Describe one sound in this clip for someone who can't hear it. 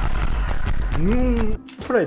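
A young man shouts in surprise.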